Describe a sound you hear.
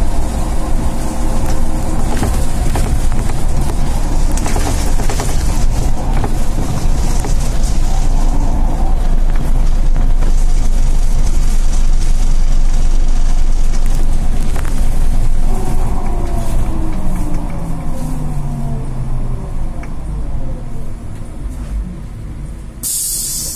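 A bus motor hums and whines as the bus drives along a road.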